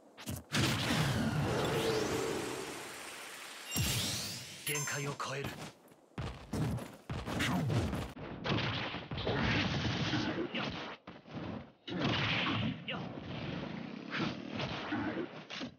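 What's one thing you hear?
Video game punches and blasts crack and whoosh in quick bursts.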